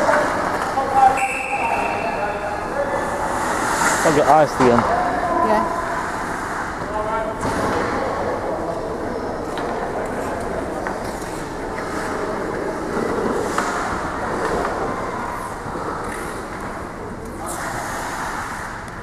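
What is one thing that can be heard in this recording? Hockey sticks clack against a puck on the ice.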